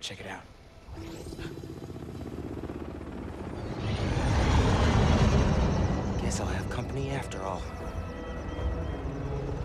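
A large aircraft's engines roar overhead, growing louder and then settling into a steady drone.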